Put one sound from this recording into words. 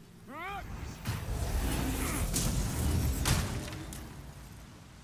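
A shimmering magical chime swells and fades.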